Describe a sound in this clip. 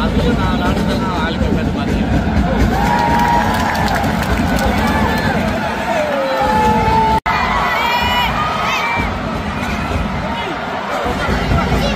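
Spectators whistle and shout loudly.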